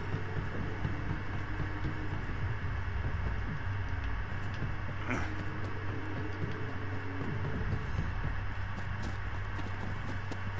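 A man talks calmly and close into a microphone.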